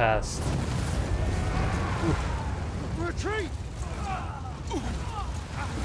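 Explosions rumble.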